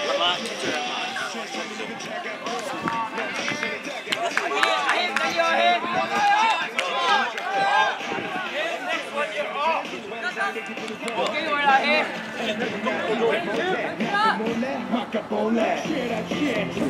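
A crowd of young men shout and call out to one another outdoors.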